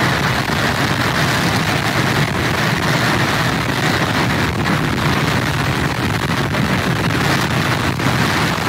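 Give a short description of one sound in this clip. Strong wind roars steadily outdoors.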